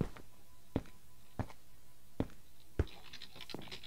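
Blocks are placed with short, soft knocks in a quick series.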